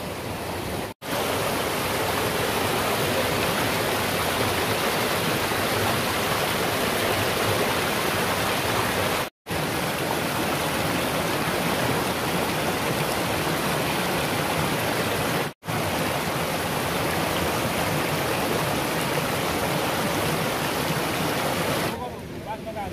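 Water rushes and splashes over rocks close by.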